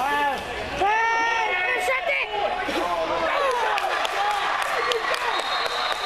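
Young players shout and cheer from the sideline.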